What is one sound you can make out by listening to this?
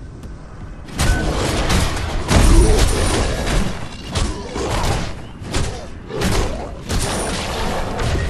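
Heavy weapons strike and clang in a close fight.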